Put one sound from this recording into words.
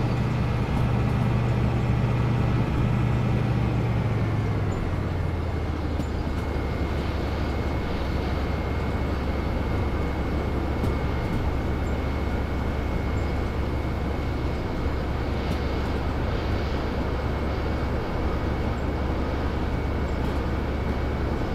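A diesel locomotive engine rumbles steadily, dropping lower after a few seconds.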